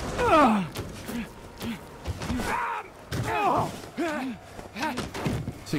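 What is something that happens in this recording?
A man talks excitedly into a close microphone.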